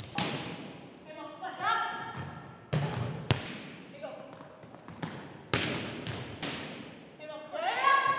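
A volleyball smacks off hands and bounces on a wooden floor, echoing in a large hall.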